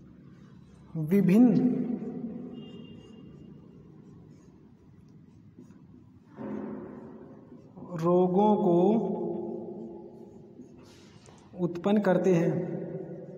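A young man speaks loudly in short phrases in an echoing room.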